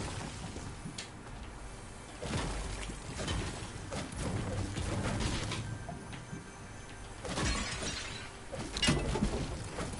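A pickaxe strikes wood with repeated sharp knocks.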